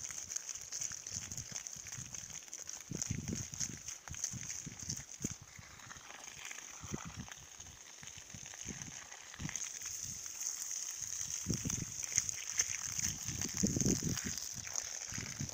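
Water from a hose splashes onto wet soil.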